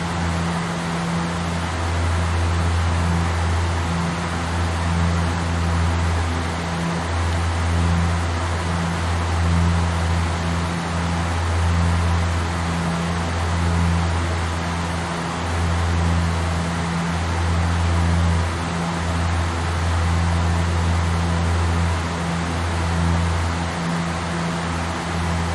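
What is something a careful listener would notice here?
Aircraft engines drone steadily with a low hum throughout.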